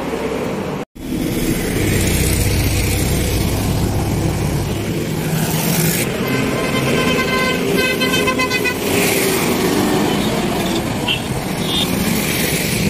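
Traffic rumbles past along a busy road outdoors.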